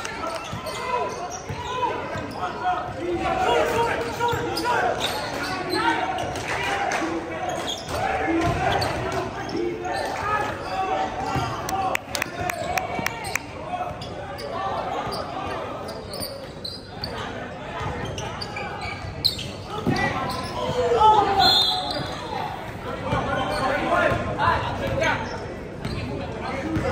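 Spectators and players shout and call out in a large echoing gym.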